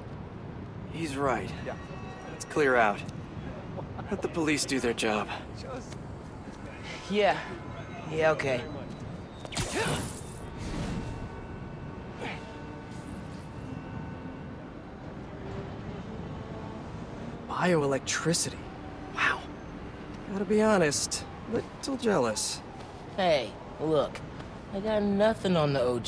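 A young man speaks tensely, close up.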